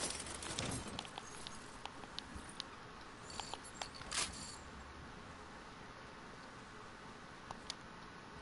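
Footsteps patter on grass and wooden floors in a game.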